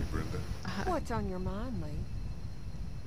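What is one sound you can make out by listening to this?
A middle-aged woman asks a question in a calm voice.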